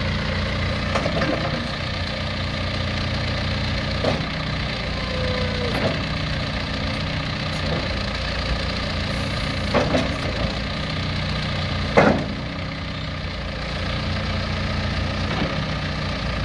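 Metal parts clank now and then.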